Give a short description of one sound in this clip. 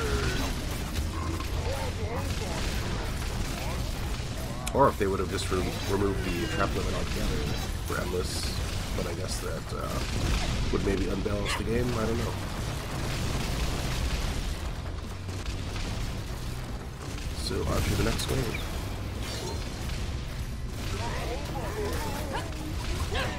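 Magic spells zap and burst in quick bursts.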